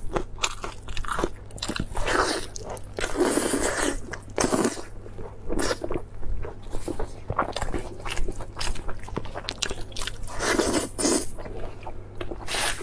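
A young woman chews and slurps food loudly and close to a microphone.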